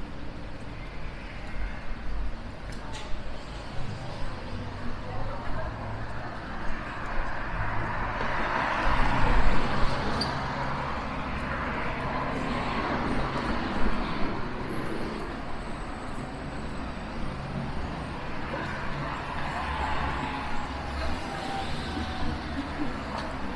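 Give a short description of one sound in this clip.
Footsteps tap on pavement close by.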